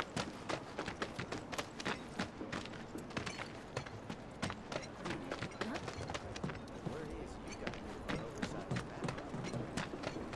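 Boots thud in quick steps on a hard surface.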